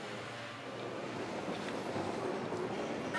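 A gas torch flame hisses and roars steadily.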